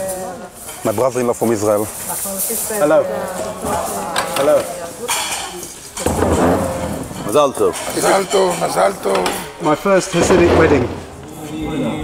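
A man talks nearby in a cheerful voice.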